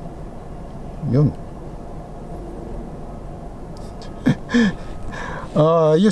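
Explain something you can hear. A man speaks briefly and casually close by.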